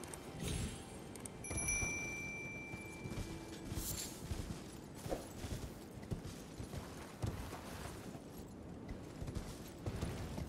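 A horse gallops with thudding hoofbeats on the ground.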